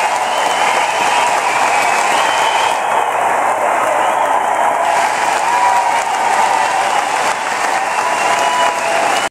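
A loud crowd cheers and shouts in a large echoing hall.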